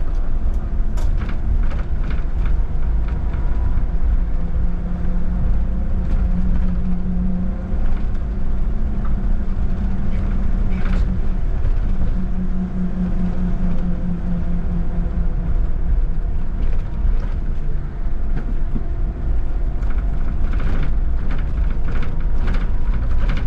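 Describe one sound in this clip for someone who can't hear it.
Tram wheels click and clack over rail joints.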